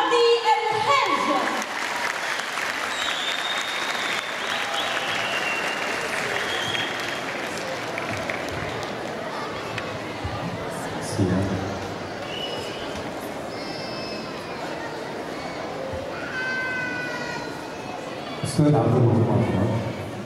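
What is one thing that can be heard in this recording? A crowd of children and adults murmurs and chatters in a large hall.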